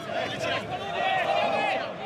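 A young man shouts out on a football pitch.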